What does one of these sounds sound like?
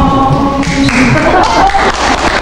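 An audience murmurs and laughs.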